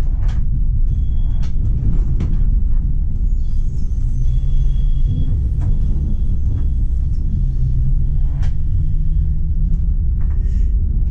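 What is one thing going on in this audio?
Tram wheels click and clatter over rail joints.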